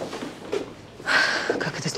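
A young woman speaks softly.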